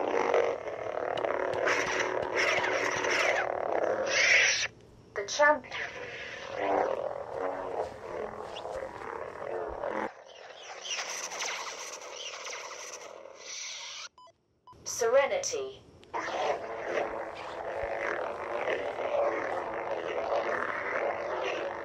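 A toy lightsaber hums and whooshes as it is swung.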